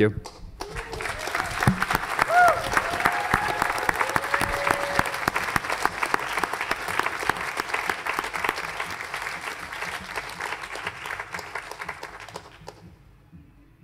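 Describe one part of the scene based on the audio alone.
A large audience claps and cheers.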